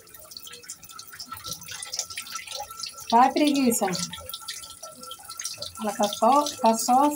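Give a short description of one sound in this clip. Water splashes and trickles into a tub.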